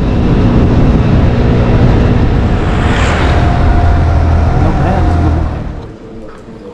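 Wind roars loudly against a moving rider outdoors.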